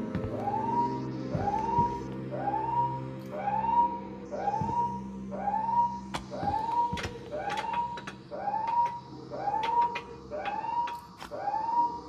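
An alarm whoops over and over in quick, even repeats.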